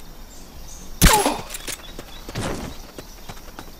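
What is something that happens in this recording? A sudden thump of a scuffle between two men.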